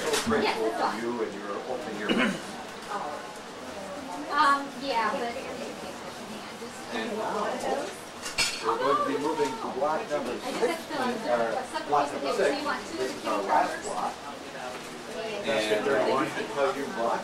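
A middle-aged woman speaks into a microphone with animation, heard through a loudspeaker in an echoing room.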